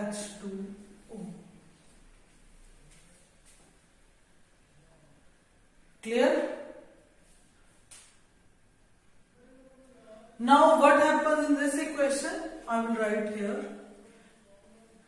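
A woman speaks calmly and clearly close by, explaining in pauses.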